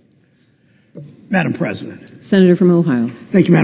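A woman speaks into a microphone in a large echoing hall.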